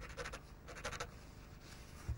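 A crayon scratches across paper.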